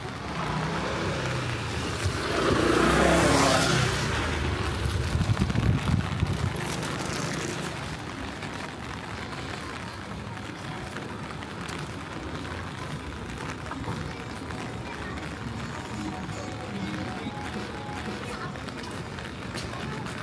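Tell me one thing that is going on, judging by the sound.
Distant city traffic hums steadily outdoors.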